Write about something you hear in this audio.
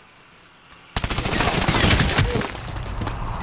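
Rapid rifle gunfire rattles close by.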